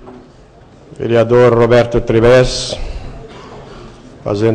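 A middle-aged man speaks loudly and steadily into a microphone.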